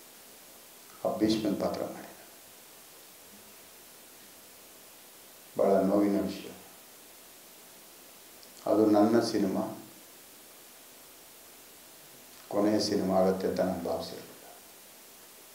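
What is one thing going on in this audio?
A middle-aged man speaks calmly into a microphone in short bursts with pauses.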